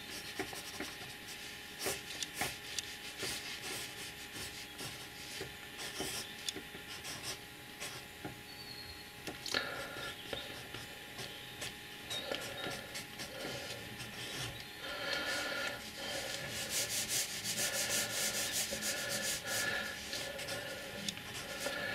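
A pen scratches and taps lightly on paper.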